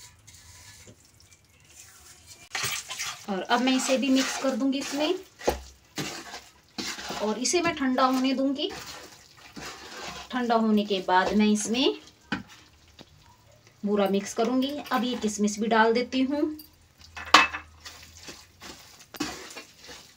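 A wooden spatula scrapes and stirs a thick mixture in a metal pan.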